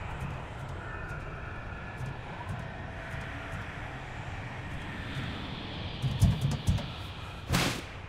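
Footsteps thud on roof tiles.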